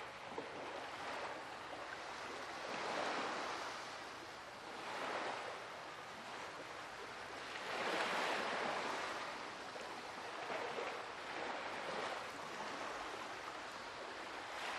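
Ocean waves roll and wash steadily.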